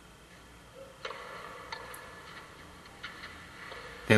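A tennis ball is struck with a racket, pop after pop.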